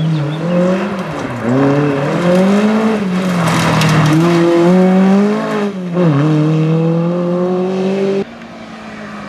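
Gravel crunches and sprays under a car's tyres.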